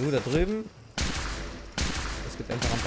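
A rifle fires loud shots in quick succession.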